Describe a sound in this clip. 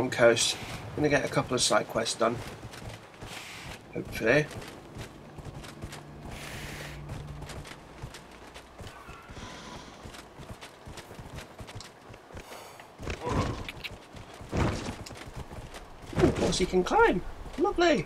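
Hooves clop steadily on rocky ground.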